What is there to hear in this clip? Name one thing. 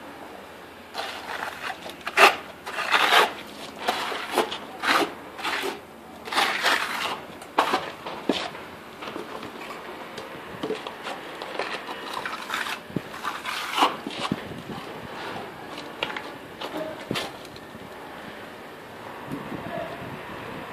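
A trowel scrapes and slaps wet plaster onto a wall.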